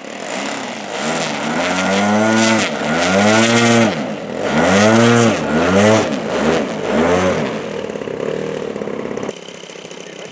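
A small model plane engine starts and revs up and down loudly.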